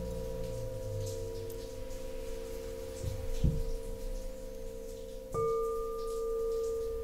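Crystal singing bowls ring with a steady, sustained hum.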